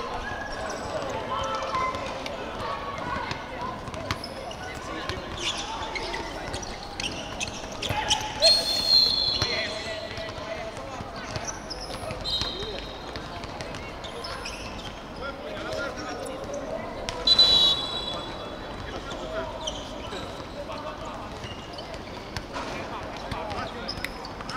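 A ball bounces on a hard court.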